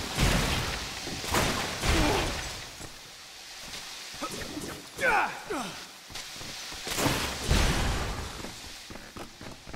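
Jets of water hiss and spray.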